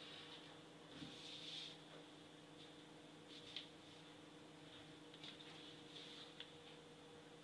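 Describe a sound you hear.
A plastic ruler clicks and slides on paper.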